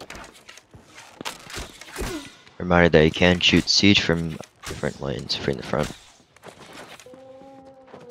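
Arrows are shot from a bow with sharp twangs.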